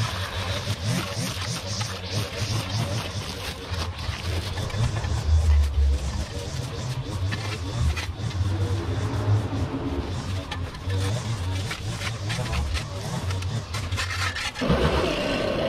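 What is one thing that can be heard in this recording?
A rake scrapes and rustles through dry leaves and debris.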